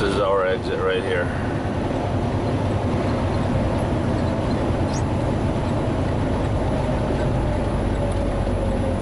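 A truck engine rumbles steadily from inside the cab while driving.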